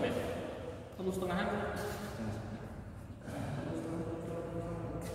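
Young men talk casually in a large echoing hall.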